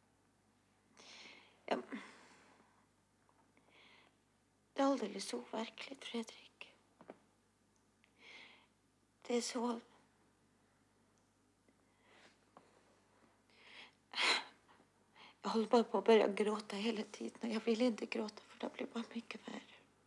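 A young woman speaks tearfully into a phone, close by.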